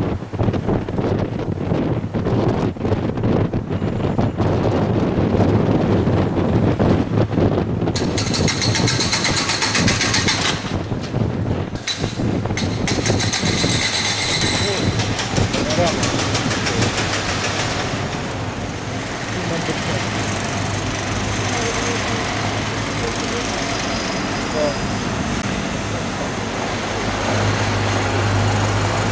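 City traffic hums and rolls by on a street.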